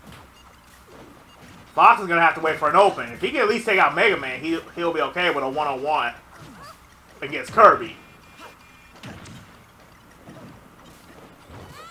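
Punches and kicks land with quick thuds and whooshes in a fighting game.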